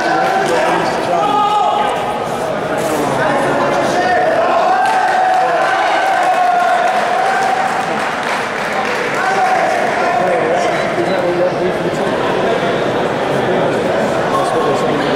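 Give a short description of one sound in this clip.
A crowd chatters and shouts throughout a large echoing hall.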